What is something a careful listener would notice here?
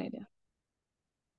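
A woman speaks briefly over an online call.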